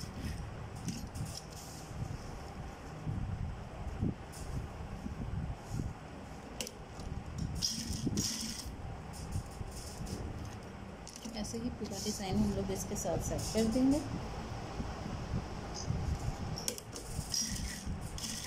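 A sewing machine runs with a fast, rattling whir.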